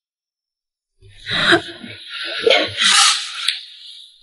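A young woman speaks softly up close.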